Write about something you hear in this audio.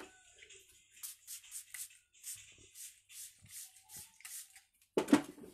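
A spray bottle hisses in quick repeated bursts.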